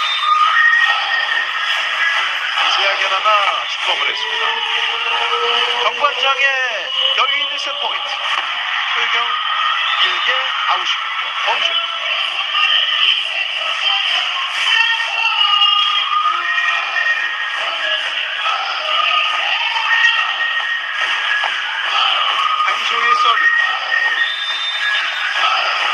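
A large crowd cheers and chants loudly in an echoing arena.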